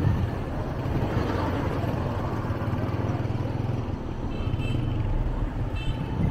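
Traffic rumbles on a street outdoors.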